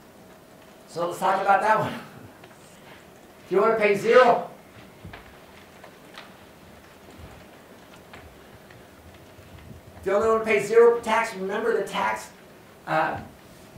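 A man lectures calmly in a small room, heard from a distance.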